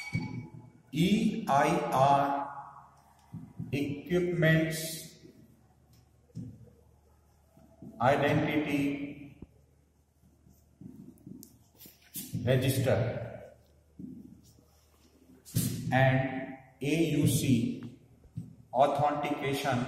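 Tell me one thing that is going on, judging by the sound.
A man speaks calmly and clearly, close to a microphone, as if explaining.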